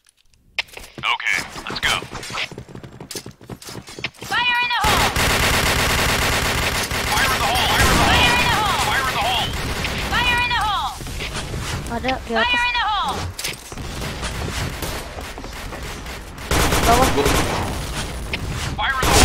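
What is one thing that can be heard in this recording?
A young woman speaks casually into a microphone.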